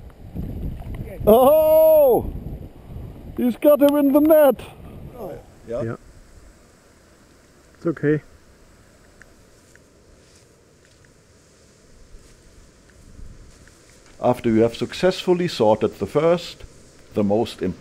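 A river flows with a soft rushing.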